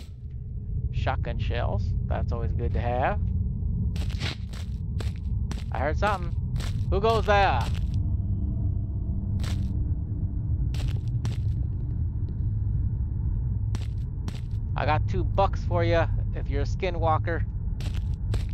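A man speaks close to a microphone in a casual tone.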